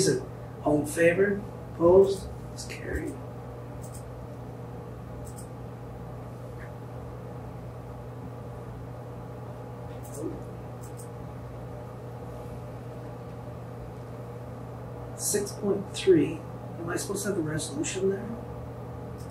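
A man speaks briefly and calmly through a microphone.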